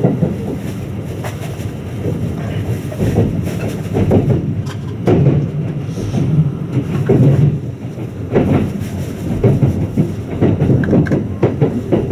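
An electric express train rumbles along at speed, heard from inside.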